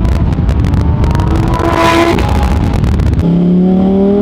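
A sports car engine roars past outside.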